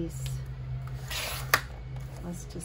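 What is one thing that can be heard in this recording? A paper trimmer blade slides and slices through paper.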